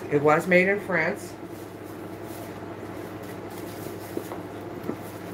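Fabric rustles as a bag is handled.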